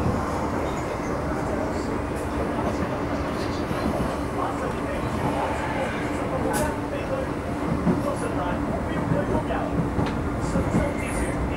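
Another train rushes past close by with a loud whoosh.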